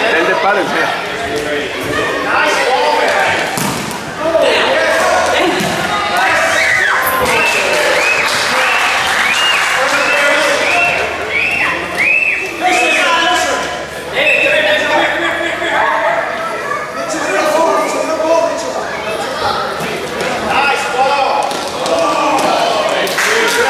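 Children and adults shout and cheer in a large echoing hall.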